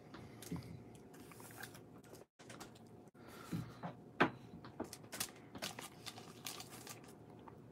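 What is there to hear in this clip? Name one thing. A plastic wrapper crinkles as it is torn and pulled open.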